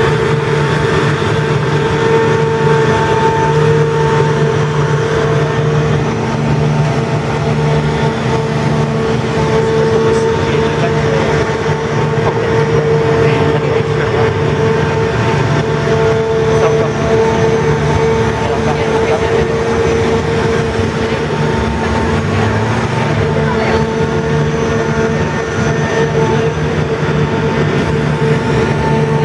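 A large machine's engine hums steadily close by.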